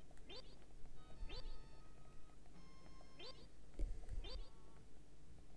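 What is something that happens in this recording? Short rising cartoon chirps repeat quickly.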